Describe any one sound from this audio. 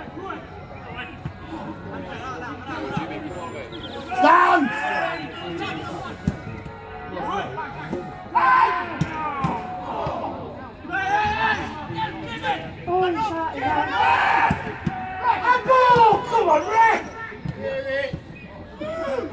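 Men close by talk and shout with animation outdoors.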